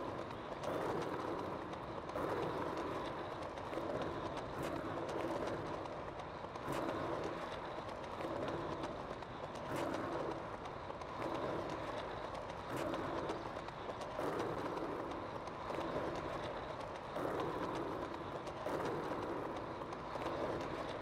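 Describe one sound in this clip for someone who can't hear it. Skateboard wheels roll and rumble steadily over paving stones.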